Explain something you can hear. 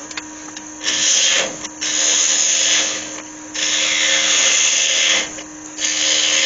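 A chisel scrapes and hisses against spinning wood.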